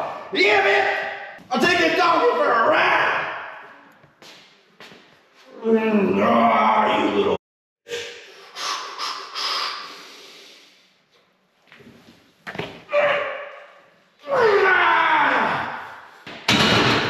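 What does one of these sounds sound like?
A man grunts and strains loudly with effort.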